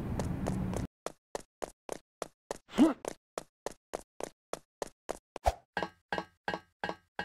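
Quick footsteps tap evenly on a hard floor.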